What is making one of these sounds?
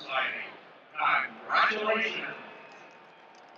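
A large stadium crowd cheers and roars in bursts.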